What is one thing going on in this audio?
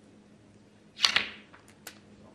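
A snooker cue strikes a ball with a sharp click.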